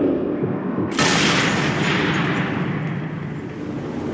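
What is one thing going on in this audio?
A rifle fires a single loud shot that rings out and slowly fades.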